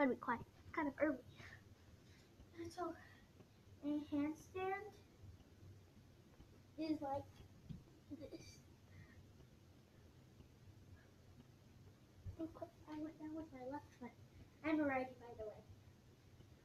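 A young girl talks and sings close by.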